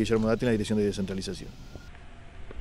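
A middle-aged man speaks calmly into microphones close by, outdoors.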